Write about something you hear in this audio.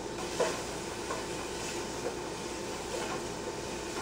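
A wooden spoon stirs food in a metal pot.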